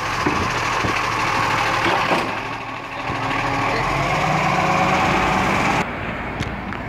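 A garbage truck engine rumbles loudly up close.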